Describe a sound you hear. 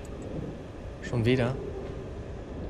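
A young man speaks briefly and loudly into a close microphone.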